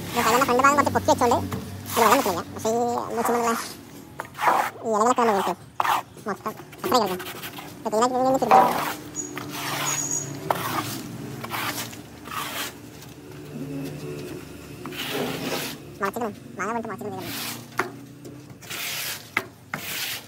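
A broom scrapes and swishes across a wet metal floor.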